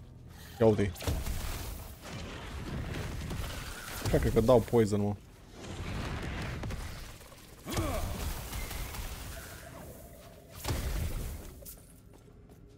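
Fiery spells roar and crackle in bursts.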